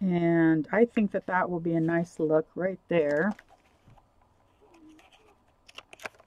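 Paper rustles and slides as pages are handled.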